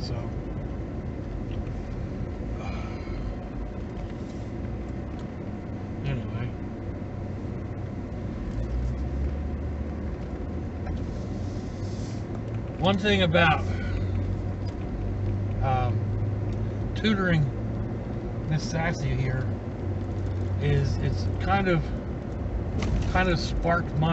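A car engine hums steadily inside a moving car.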